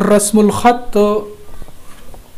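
A man speaks loudly and clearly nearby.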